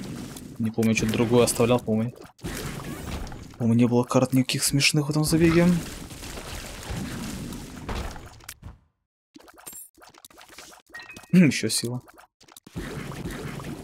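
A video game laser blast roars in short bursts.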